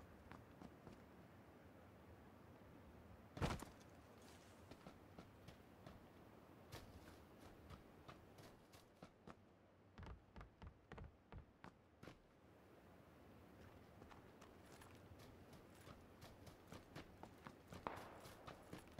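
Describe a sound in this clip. Footsteps thud quickly across a roof and then over ground.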